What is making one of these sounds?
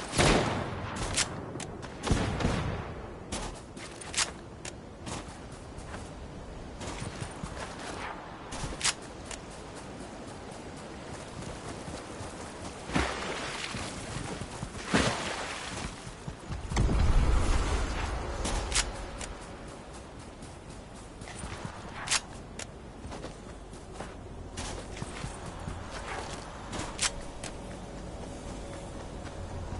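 Quick footsteps crunch on sand and rock.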